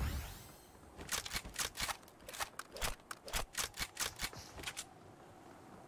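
A laser gun fires in quick bursts.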